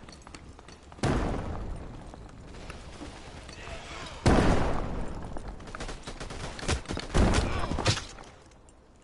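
Gunshots crack loudly, with short echoing bursts.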